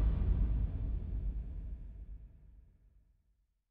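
An aircraft engine drones and fades away.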